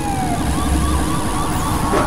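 A laser beam hums and zaps.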